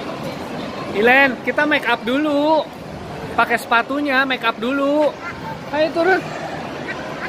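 A young girl laughs and squeals excitedly close by.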